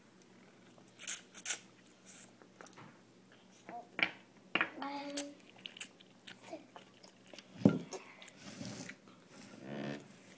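A young child slurps and smacks on noodles.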